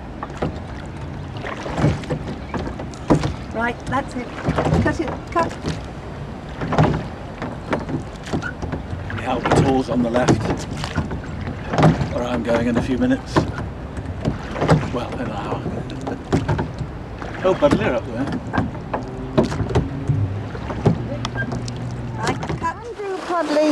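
Oars splash and creak in the water.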